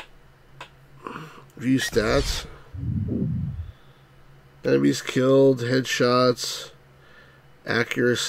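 A man talks casually and close to a microphone.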